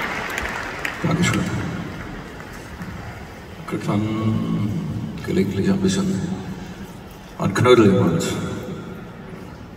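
A man sings with feeling through loudspeakers in a large echoing hall.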